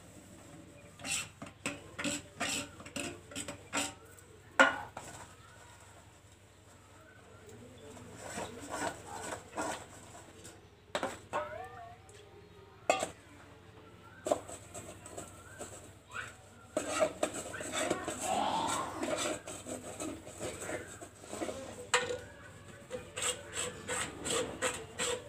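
Metal dishes clatter and clink.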